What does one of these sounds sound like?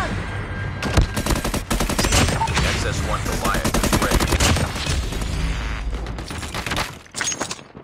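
Rapid gunfire bursts out close by.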